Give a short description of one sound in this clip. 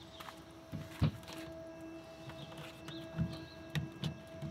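A plastic hatch cover clicks and knocks as it is unlatched and opened.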